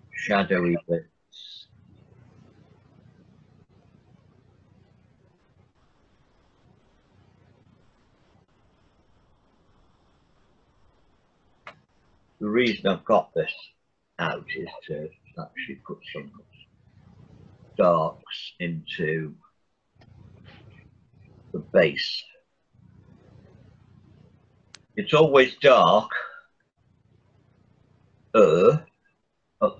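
A man talks calmly over an online call, in short bursts with pauses.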